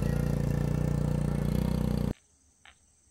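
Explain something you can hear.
A motorbike engine hums close by.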